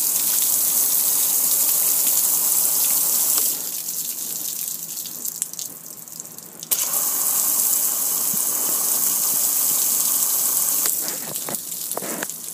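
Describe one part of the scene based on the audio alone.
Heavy rain pours down and splashes loudly on a metal surface.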